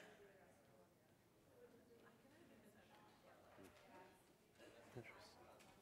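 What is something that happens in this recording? A man speaks at a distance in a large echoing hall.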